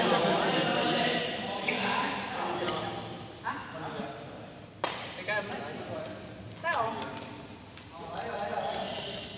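Men talk in the background.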